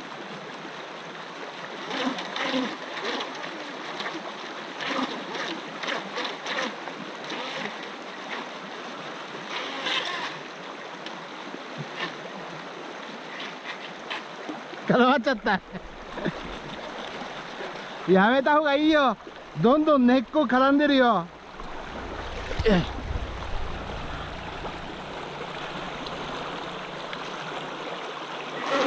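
Shallow water flows and trickles over rocks.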